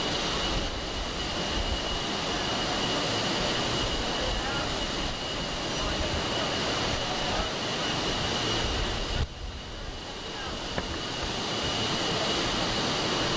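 Water rushes and churns steadily in a ship's wake.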